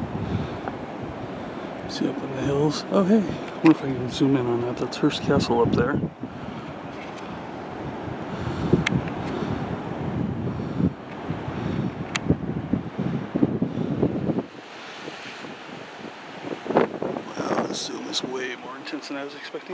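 Waves break and wash onto a beach in the distance.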